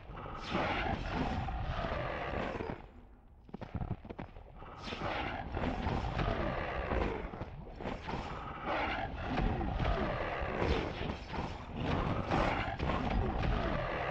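A chain whip whooshes through the air.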